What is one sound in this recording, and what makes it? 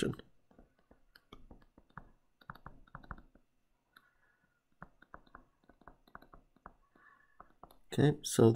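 A stylus taps and scratches softly on a tablet.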